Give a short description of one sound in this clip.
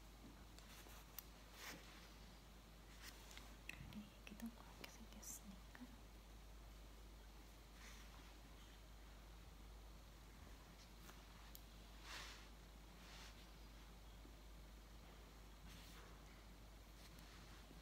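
Small scissors snip softly, close by.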